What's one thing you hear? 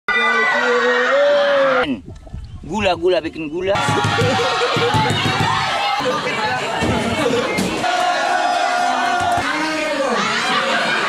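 A crowd of young people cheers and shouts excitedly.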